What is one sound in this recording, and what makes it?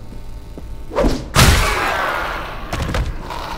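A heavy blow strikes with a loud crash.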